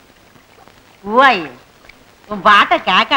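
A woman sings a melody loudly and clearly.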